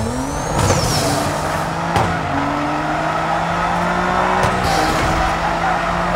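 Tyres screech as a car drifts.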